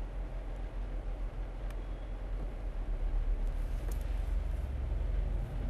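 Footsteps splash on a wet road.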